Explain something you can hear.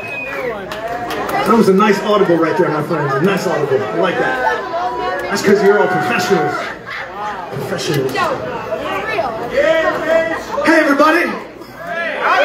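A man sings loudly into a microphone through loudspeakers.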